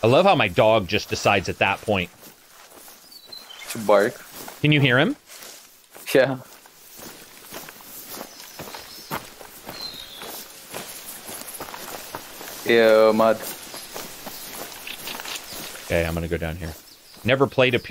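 Tall grass rustles as someone walks through it.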